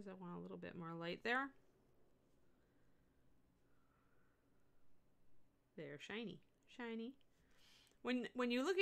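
A middle-aged woman speaks calmly into a microphone, heard as on an online call, with pauses.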